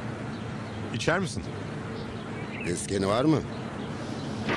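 Another man answers.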